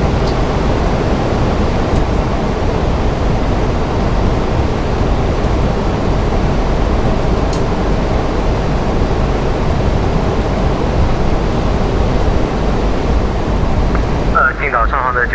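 A steady, loud roar of an aircraft in flight fills the cabin.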